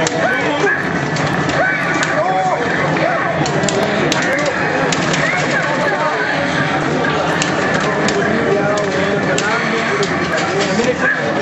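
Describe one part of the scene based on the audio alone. Lively game music plays through a loudspeaker.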